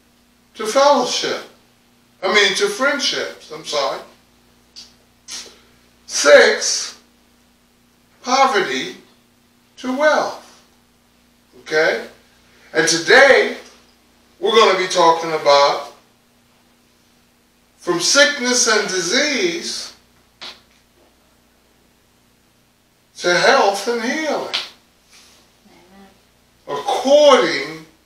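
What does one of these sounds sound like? A man preaches into a microphone in short, emphatic phrases with long pauses.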